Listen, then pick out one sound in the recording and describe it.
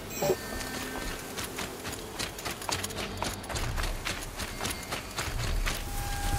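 Footsteps crunch through snow at a quick pace.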